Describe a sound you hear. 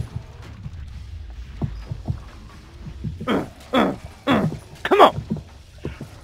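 A blade slashes into flesh with wet thuds.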